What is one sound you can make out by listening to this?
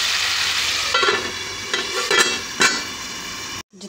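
A metal lid clanks onto a pan.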